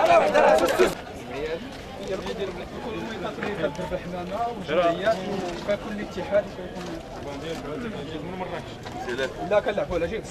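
Men talk quietly in a murmuring crowd.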